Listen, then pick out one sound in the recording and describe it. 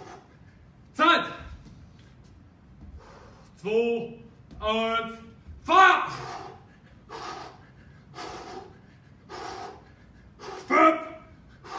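A man speaks in short loud bursts, calling out in an echoing room.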